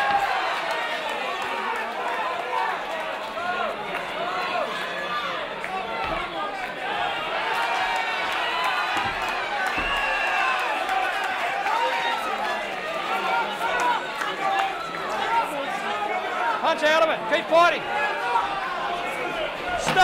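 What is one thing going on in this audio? A crowd of spectators shouts and cheers in a large hall.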